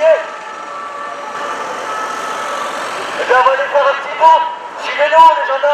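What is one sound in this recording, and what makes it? A man speaks loudly through a megaphone outdoors.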